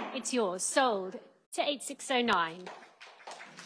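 A woman speaks clearly through a microphone in a large room.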